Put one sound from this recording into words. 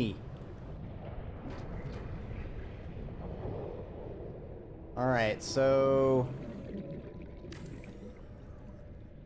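Lava rumbles and hisses steadily.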